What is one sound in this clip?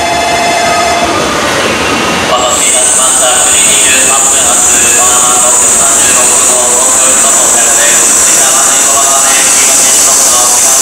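A train rolls into a station with a steady rumble.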